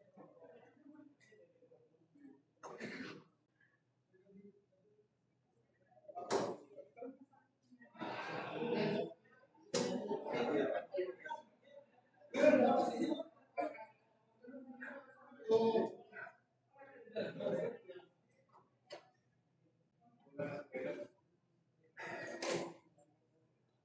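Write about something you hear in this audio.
Darts thud into a bristle dartboard.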